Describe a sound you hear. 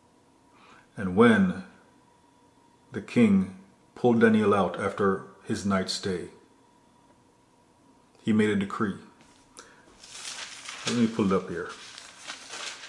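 A man speaks calmly and close to a microphone, in short phrases with pauses.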